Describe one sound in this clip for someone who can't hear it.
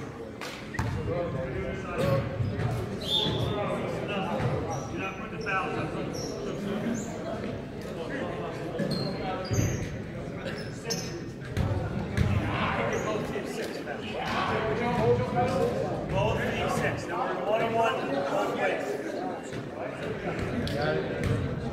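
Basketballs bounce on a hardwood court in an echoing gym.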